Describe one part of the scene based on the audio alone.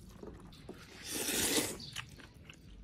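A man slurps noodles loudly.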